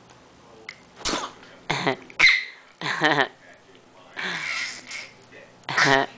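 A baby laughs and squeals loudly close by.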